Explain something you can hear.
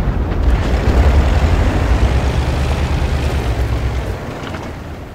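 A tank engine rumbles low and heavy, then fades.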